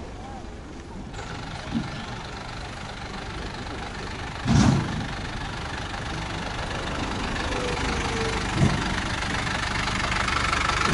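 A vehicle drives steadily along a paved road, its tyres humming.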